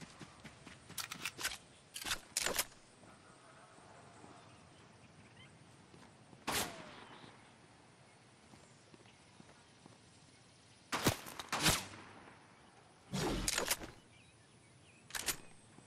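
Footsteps clatter now and then on a tiled roof.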